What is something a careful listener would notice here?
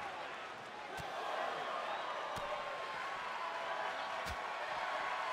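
Heavy thuds land on a wrestling ring mat.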